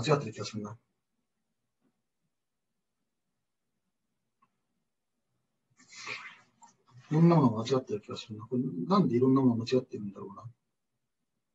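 A man speaks calmly into a microphone, as if lecturing over an online call.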